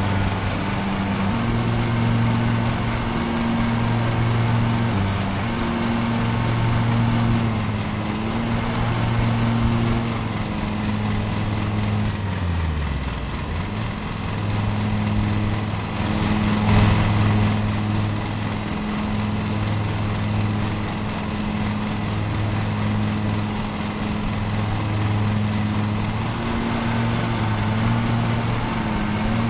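A small mower engine hums steadily, briefly dropping in pitch then rising again.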